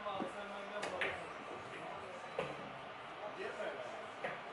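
Billiard balls clack against each other.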